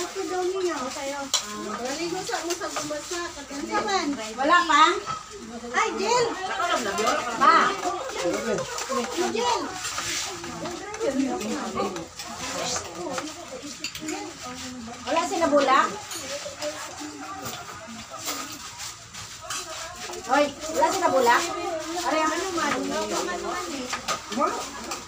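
Serving spoons clink against dishes.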